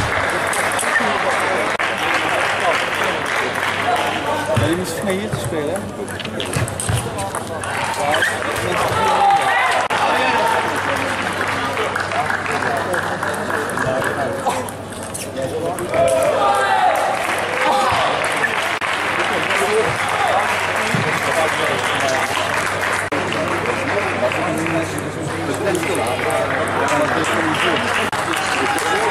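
A ping-pong ball clicks back and forth off paddles and a table.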